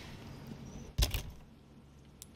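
A metal case snaps open.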